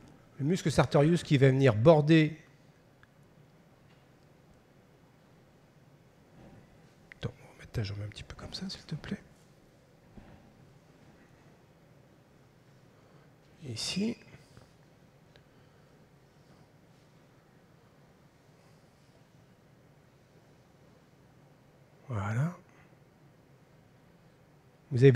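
A man speaks calmly through a microphone in a large hall, with long pauses.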